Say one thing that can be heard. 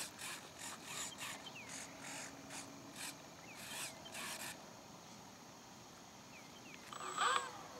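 A radio-controlled model plane's motor whirs as it taxis.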